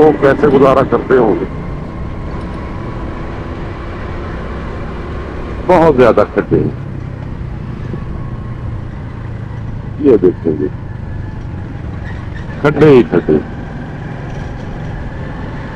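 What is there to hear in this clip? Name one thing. A motorcycle engine hums steadily close by.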